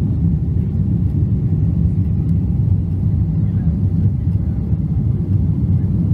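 A jet airliner's engines roar steadily as the plane rolls along a runway, heard from inside the cabin.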